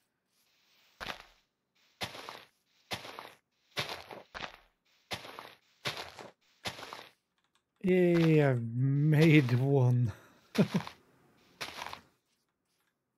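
Leaves crunch and rustle as leaf blocks are broken, again and again.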